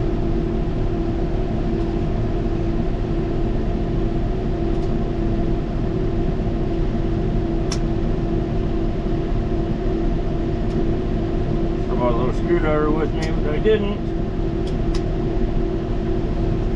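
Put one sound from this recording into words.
Pliers click and snip against wire.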